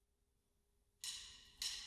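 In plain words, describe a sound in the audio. A band of wind instruments plays in a large hall.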